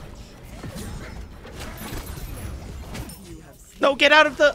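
Magic blasts crackle and boom in a fierce fight.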